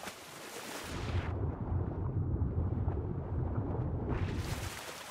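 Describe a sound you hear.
Water rumbles, muffled, from beneath the surface.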